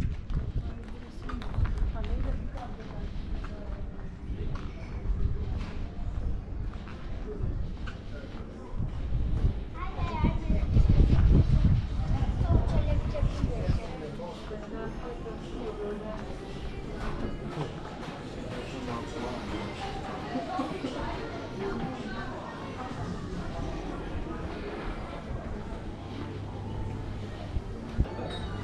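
Footsteps scuff along a stone-paved street.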